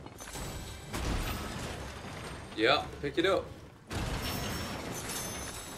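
A glowing weapon swings through the air with a whoosh.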